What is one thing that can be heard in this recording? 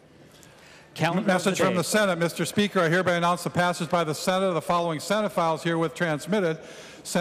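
An older man speaks through a microphone in a large echoing hall.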